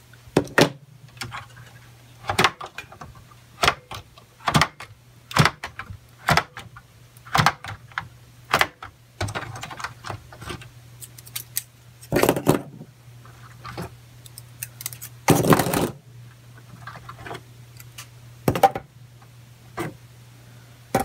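Memory modules click and snap into their slots.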